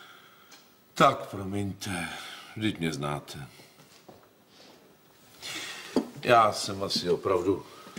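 A middle-aged man speaks wearily and close by.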